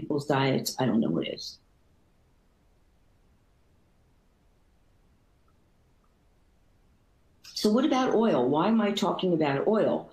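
A middle-aged woman speaks calmly and clearly into a microphone, as if over an online call.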